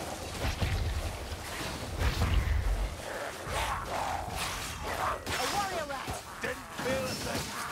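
A sword slashes and hits creatures.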